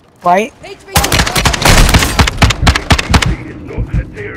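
A rifle fires rapid bursts of loud shots that echo.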